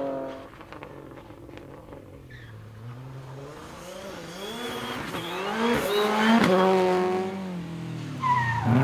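A rally car engine roars as it speeds past, rising and falling in pitch with gear changes.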